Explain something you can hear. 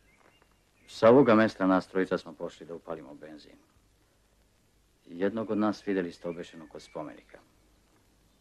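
A man speaks loudly and firmly, in short bursts with a pause between.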